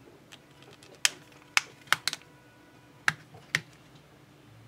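A phone case snaps onto a phone with sharp clicks.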